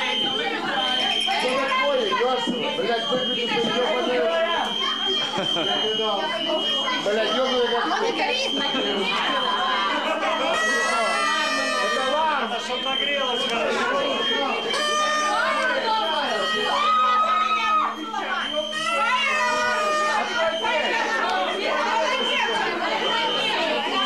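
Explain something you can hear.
A crowd of men and women talk over one another.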